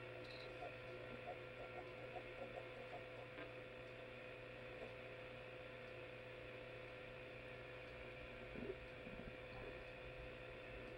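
An old television gives off a steady electrical hum.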